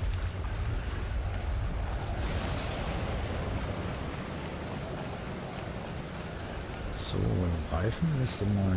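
Gentle waves wash onto a shore.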